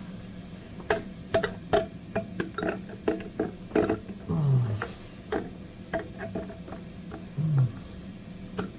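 A metal engine cover clanks and scrapes as it is lifted off.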